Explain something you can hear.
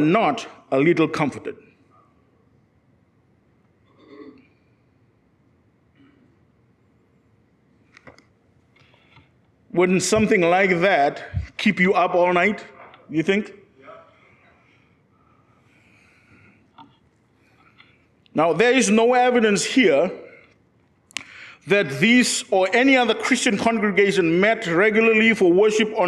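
A man speaks into a microphone with animation, pausing between phrases.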